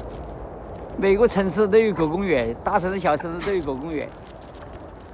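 A woman talks to dogs with animation, close by.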